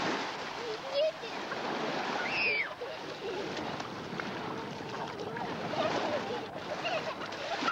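Young children shout and squeal outdoors.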